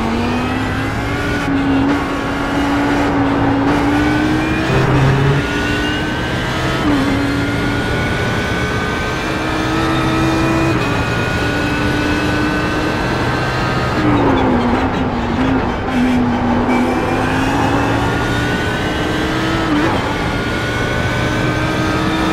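A racing car engine roars, rising in pitch as the car speeds up and dropping through gear changes.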